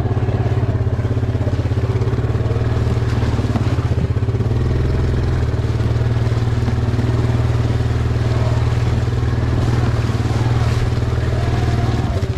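Tyres crunch and bump over a rough dirt trail.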